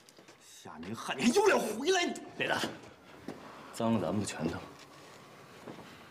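A young man speaks firmly and close by.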